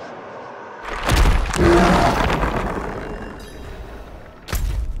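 A deep magical whoosh swells and slowly fades.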